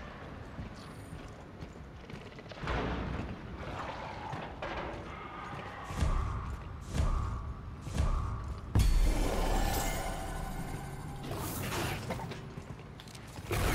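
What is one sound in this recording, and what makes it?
Heavy armoured footsteps thud on a hard floor.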